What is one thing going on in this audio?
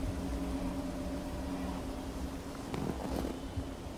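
A child crawls through snow.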